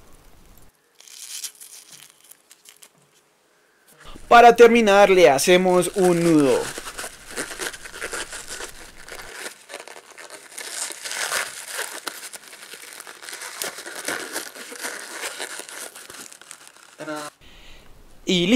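A rubber balloon squeaks and rustles as it is stretched and tied.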